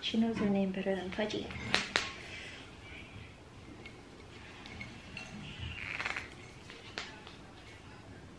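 Foil rustles as a wine bottle's neck is peeled.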